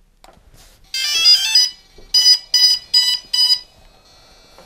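An electronic device beeps several times in quick bursts.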